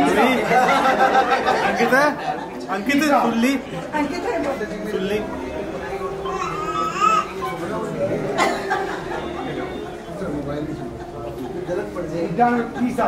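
A crowd of men and women chatter.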